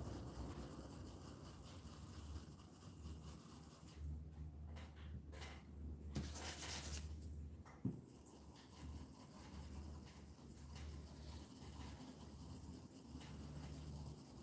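A paintbrush brushes softly across a board.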